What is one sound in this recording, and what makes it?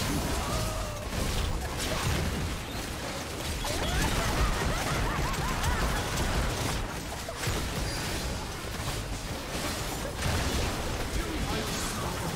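Magic spells crackle and blast in a fierce battle.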